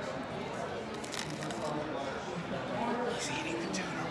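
A man chews food with his mouth full.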